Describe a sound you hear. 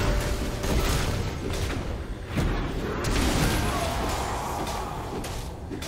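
Spell effects crackle and burst in a fast game fight.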